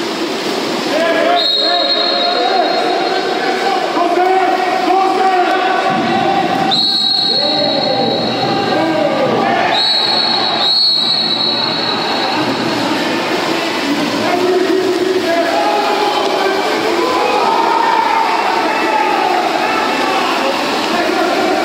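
Swimmers splash and thrash in a pool.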